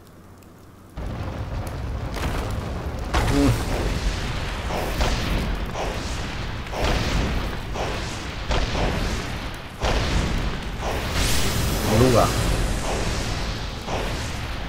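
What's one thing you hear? A deep rumbling crash of breaking ground fills the space.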